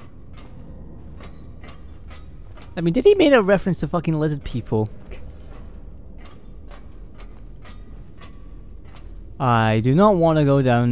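Footsteps clang on a metal grating stairway at a steady pace.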